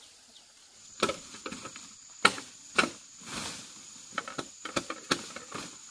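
Leaves and ferns rustle and crackle as a person moves through undergrowth.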